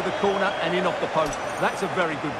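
A football is struck hard with a thump.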